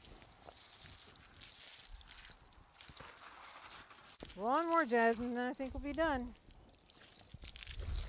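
Water from a hose splashes onto the ground.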